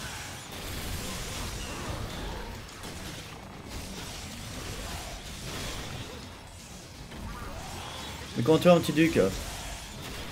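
Game sword slashes and impacts clash and ring.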